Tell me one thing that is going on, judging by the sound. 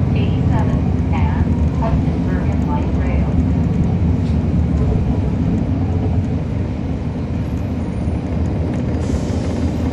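A diesel transit bus engine rumbles, heard from inside the bus.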